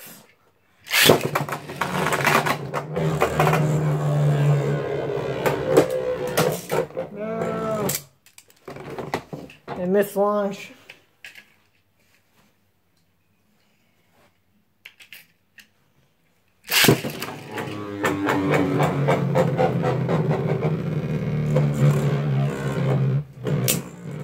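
Spinning tops whir and scrape across a plastic bowl.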